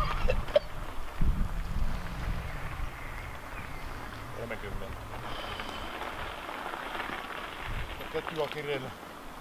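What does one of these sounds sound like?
Bicycle tyres crunch slowly on gravel.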